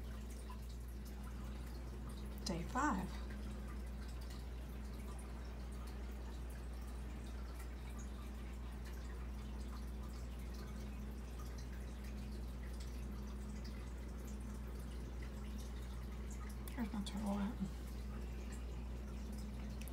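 Air bubbles fizz and gurgle in water.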